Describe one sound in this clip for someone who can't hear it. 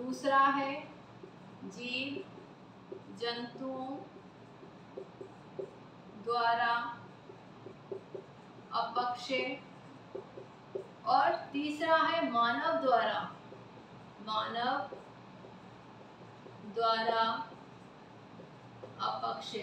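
A woman speaks calmly and clearly, as if teaching, close by.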